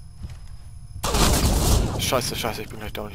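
Rifle shots fire in a quick burst.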